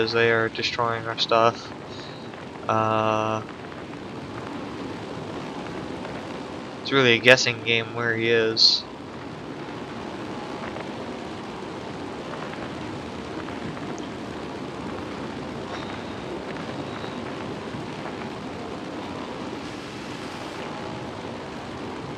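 A plane's engine drones.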